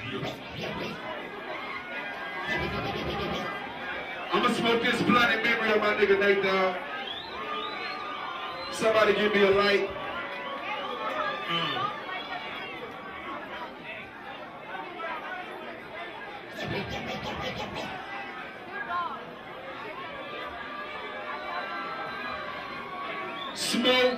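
A crowd cheers and shouts in a crowded room.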